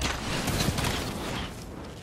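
An explosion bursts with a deep boom.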